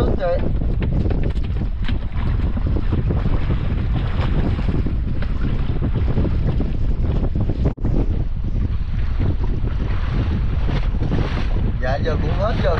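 Waves lap against the side of a small boat.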